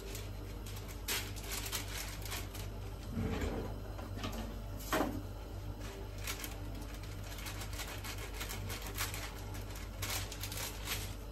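Paper crinkles and rustles in a woman's hands.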